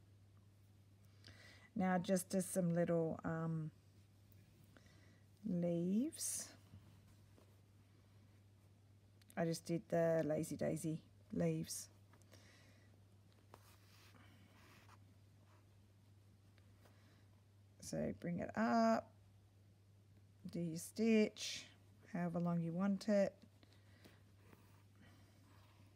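Cloth rustles as hands handle it.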